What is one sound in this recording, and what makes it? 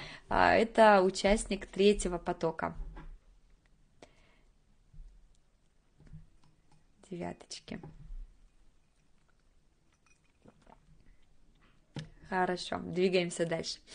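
A young woman speaks calmly into a close microphone, with pauses.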